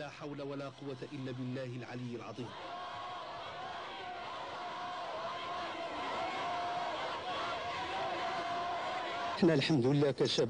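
A large crowd chants and cheers outdoors.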